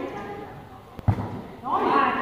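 A ball is struck with a thud.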